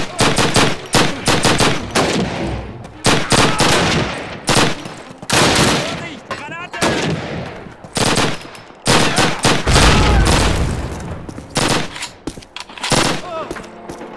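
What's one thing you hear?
A submachine gun fires loud bursts that echo off nearby walls.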